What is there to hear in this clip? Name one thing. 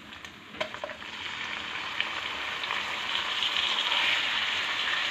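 Raw meat drops into hot oil and sizzles loudly.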